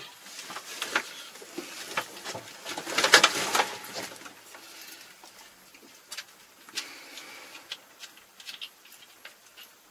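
Switches and controls click and clatter close by.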